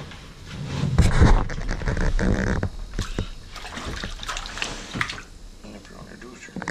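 Slushy water splashes softly in a hole in the ice.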